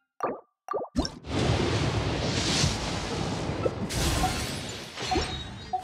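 A bright magical whoosh swells with shimmering chimes.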